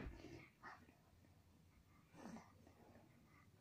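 A baby coos and babbles softly close by.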